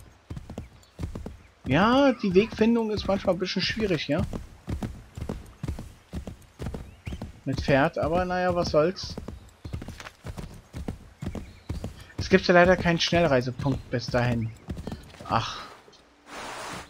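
A horse gallops with hooves thudding on soft ground.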